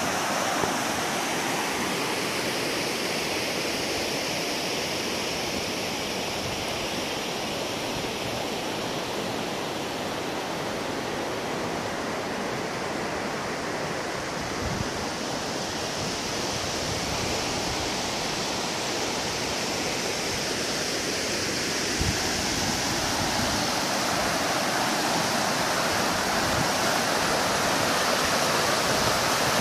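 A river rushes and splashes over rocks nearby, growing louder.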